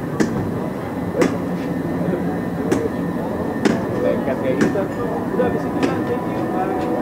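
A bell clangs sharply again and again.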